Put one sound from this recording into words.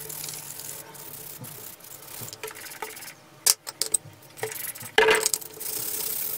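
Plastic parts click and clatter as they are handled.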